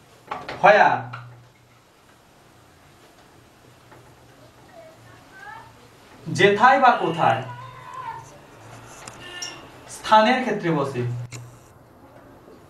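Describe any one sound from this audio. A young man speaks nearby in bursts, explaining calmly.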